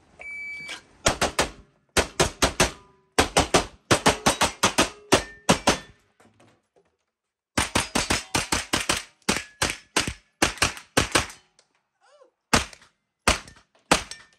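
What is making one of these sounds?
A handgun fires rapid shots that echo sharply.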